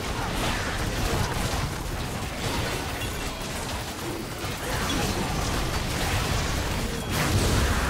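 Game spells blast and crackle in a busy video game battle.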